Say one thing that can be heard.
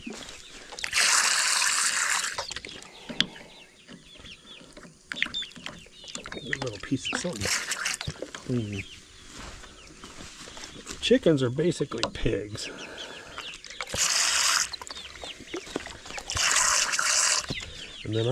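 A squeeze bottle squirts liquid in short hissing bursts.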